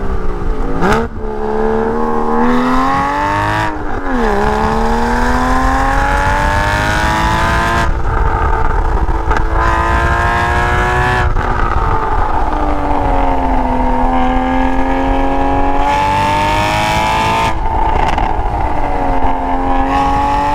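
A car engine hums and revs up and down through gear changes.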